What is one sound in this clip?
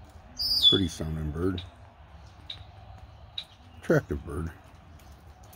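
A crow caws loudly nearby.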